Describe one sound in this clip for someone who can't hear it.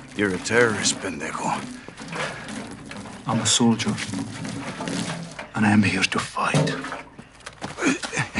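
A young man answers tensely up close.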